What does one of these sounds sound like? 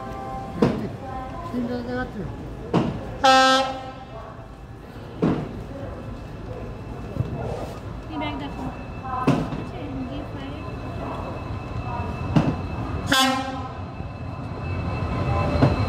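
A train rumbles as it approaches, growing louder.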